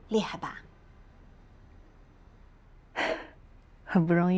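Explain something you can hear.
A middle-aged woman speaks softly, close by.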